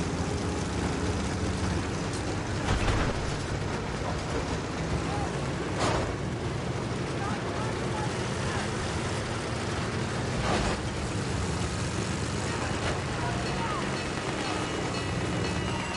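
A tank engine rumbles and its tracks clank steadily.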